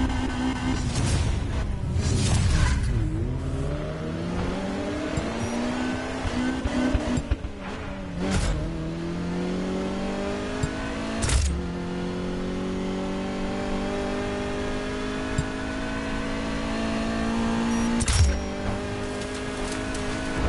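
A sports car engine revs hard and roars as it accelerates, rising in pitch through each gear.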